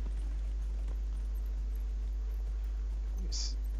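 Horse hooves clop on wooden planks.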